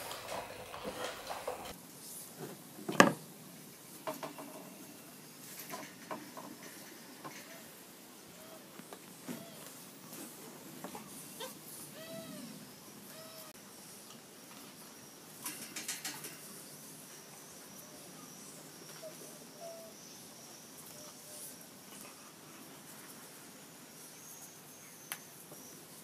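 Puppy paws scuffle and patter on a hard floor.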